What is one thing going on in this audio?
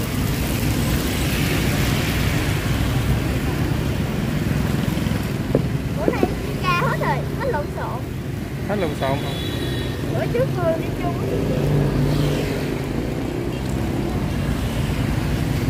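Batter sizzles and bubbles in a hot pan.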